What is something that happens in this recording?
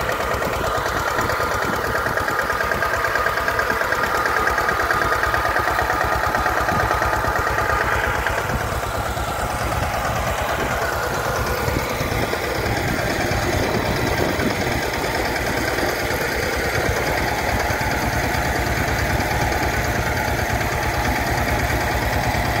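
A small tractor engine chugs steadily close by.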